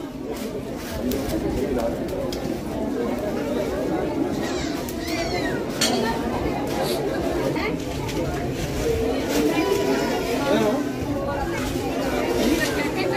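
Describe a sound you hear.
A large crowd murmurs and chatters all around outdoors.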